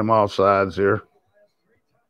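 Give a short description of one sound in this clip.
A man speaks loudly and with animation close to a microphone, then falls quiet.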